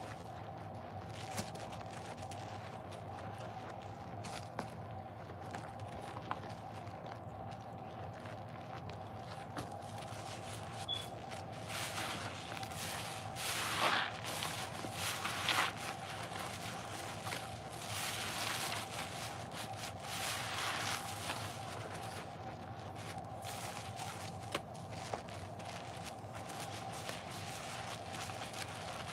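Wet foam squishes and squelches as hands squeeze soapy sponges.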